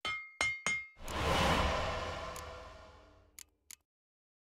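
A blacksmith's crafting clang rings out and slowly fades.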